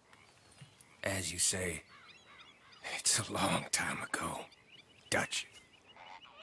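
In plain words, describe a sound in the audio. An older man answers slowly in a rough, weary voice.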